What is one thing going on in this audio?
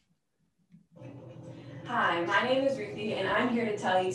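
A young woman sings in a recorded clip.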